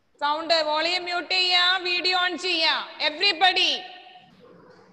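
A young girl sings a melody close by.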